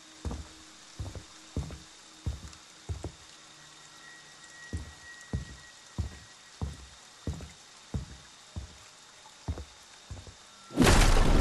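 Heavy footsteps thud on wooden floorboards at a steady walking pace.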